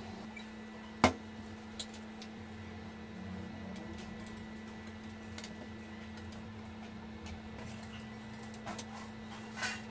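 A plastic mould knocks against a hard countertop.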